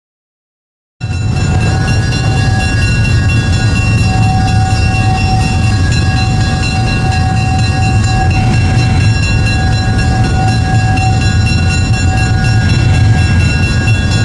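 A diesel locomotive engine rumbles and hums steadily.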